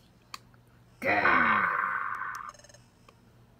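A game console plays a deep, rumbling monster growl.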